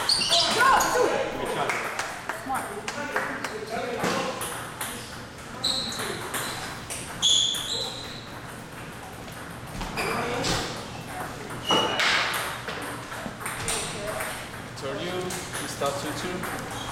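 Ping-pong balls click on tables and paddles.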